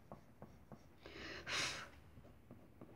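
A coloured pencil scratches softly across paper.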